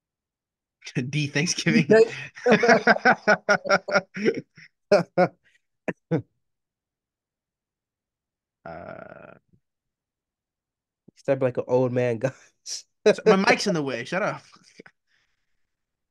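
A second young man laughs and talks over an online call.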